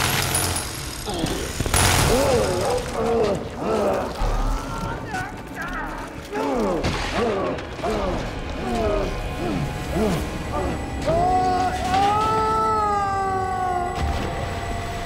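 A monstrous creature roars and growls.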